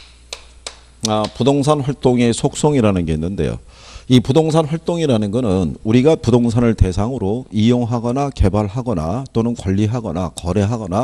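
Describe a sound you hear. A man speaks with animation through a microphone, heard over a loudspeaker.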